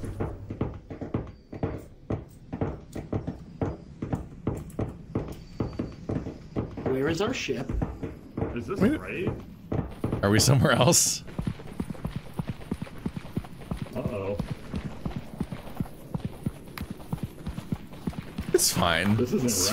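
Footsteps thud steadily on a hard stone floor.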